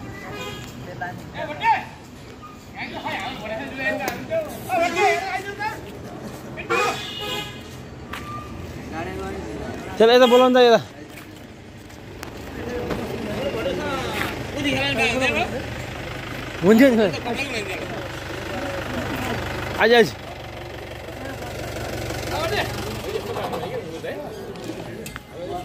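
Men talk nearby outdoors.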